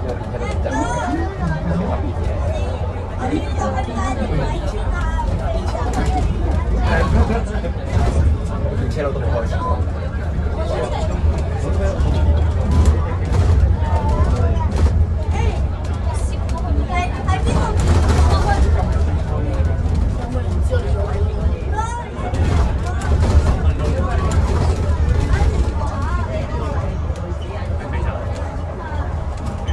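A bus body rattles and clatters over the road.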